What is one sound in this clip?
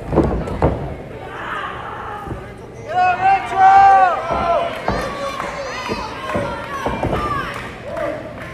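A body thuds against a wrestling mat.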